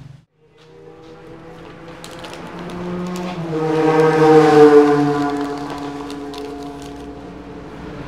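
Paper crinkles and rustles as it is folded.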